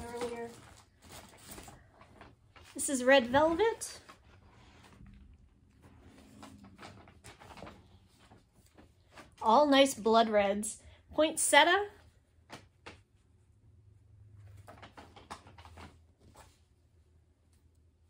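Paper and thread rustle in a woman's hands.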